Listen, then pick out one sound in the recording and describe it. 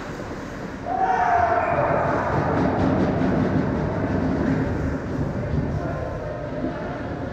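Young men shout and cheer loudly in a large echoing rink.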